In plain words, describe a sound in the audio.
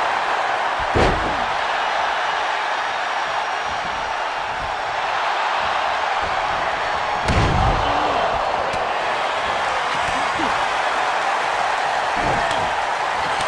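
Heavy thuds of bodies hitting the ring mat boom now and then.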